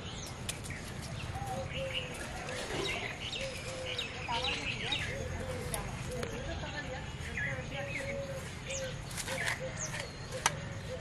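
A puppy whimpers softly nearby.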